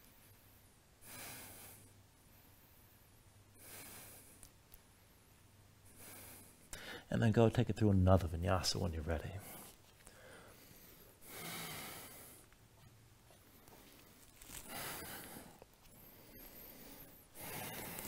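A man breathes out slowly and deeply.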